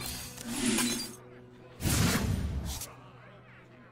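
A computer game plays bright magical sound effects with a whoosh and a chime.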